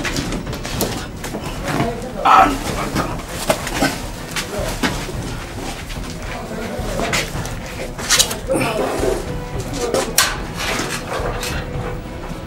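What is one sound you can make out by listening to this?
Fabric rustles and rubs close by.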